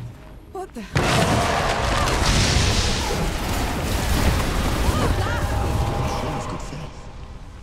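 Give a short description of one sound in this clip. A magical storm bursts out with a loud roaring blast and crackling.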